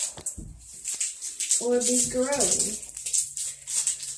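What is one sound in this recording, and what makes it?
Small beads patter into an empty bathtub.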